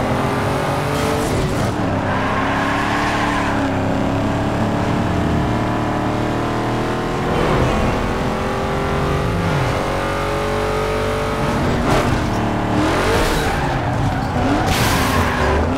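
Tyres screech as a car drifts round corners.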